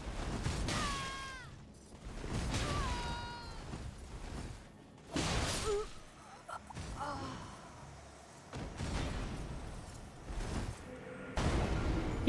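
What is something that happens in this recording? Sword blows clash and thud in a fight.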